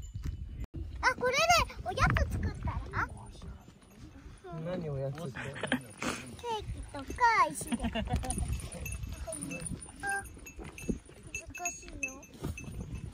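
A young girl talks in a high voice close by.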